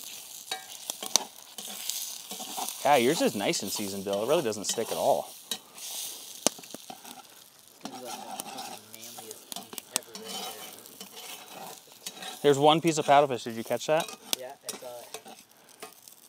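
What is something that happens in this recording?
Eggs sizzle and crackle in a hot pan.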